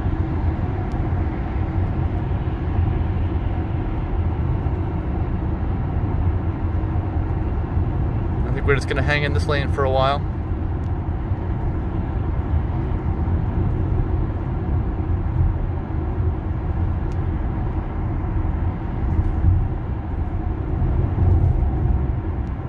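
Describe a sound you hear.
A car hums along a highway with a steady low road rumble inside the cabin.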